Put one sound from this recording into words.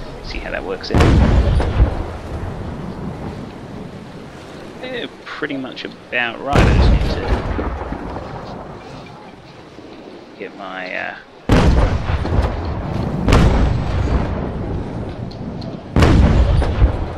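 Cannons fire with deep, loud booms.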